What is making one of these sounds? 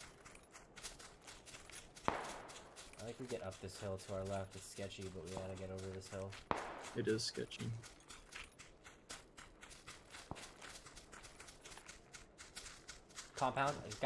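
Footsteps rustle quickly through tall grass.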